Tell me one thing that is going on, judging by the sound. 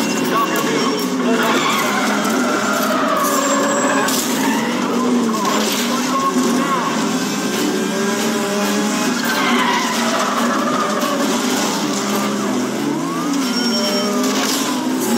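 A sports car engine roars and revs up and down.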